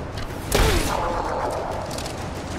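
An explosion bursts and crackles.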